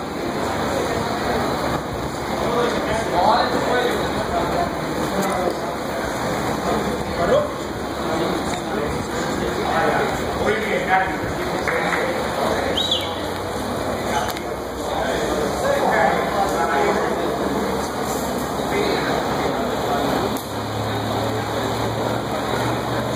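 A crowd murmurs and shouts in a large echoing hall.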